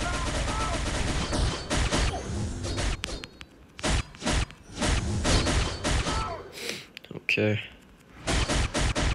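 Heavy blows and slashes crash and whoosh in quick bursts.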